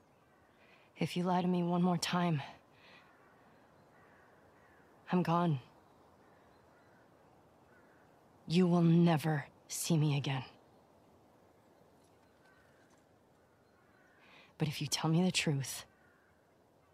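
A young woman speaks in a tense, earnest voice.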